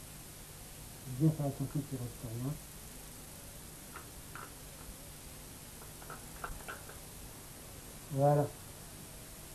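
A knife cuts wetly through flesh.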